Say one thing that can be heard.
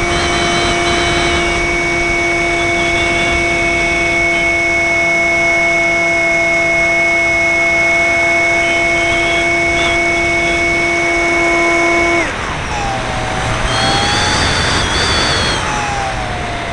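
Wind rushes past a small model plane.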